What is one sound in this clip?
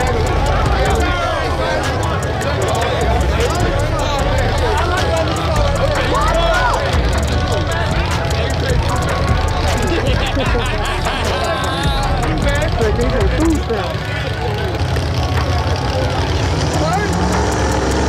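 A large outdoor crowd of men and women chatters and shouts loudly nearby.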